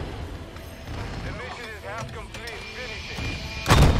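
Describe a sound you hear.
A jet roars past overhead.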